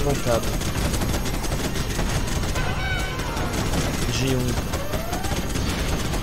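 Gunfire and explosions rumble steadily.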